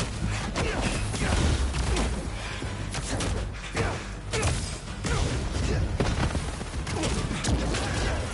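A man talks animatedly close to a microphone.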